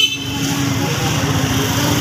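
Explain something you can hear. A motorbike engine hums nearby.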